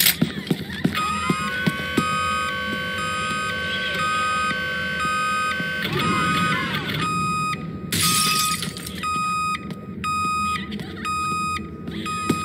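An alarm beeps in a steady repeating pattern.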